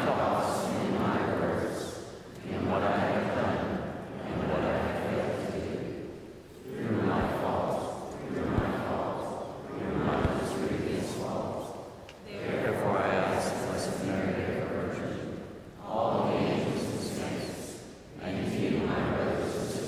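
A man sings a slow chant through a microphone in a large echoing church.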